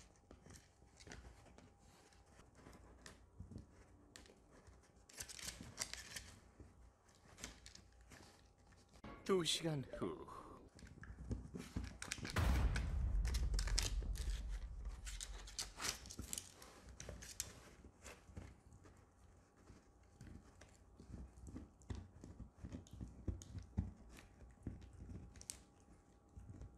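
A dog gnaws and chews on a hard chew toy, with crunching clicks.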